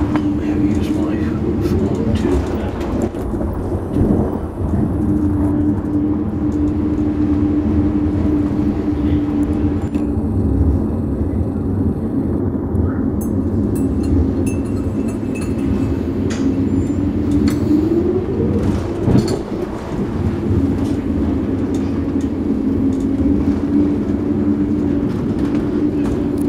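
A pencil scratches and scrapes on paper close by.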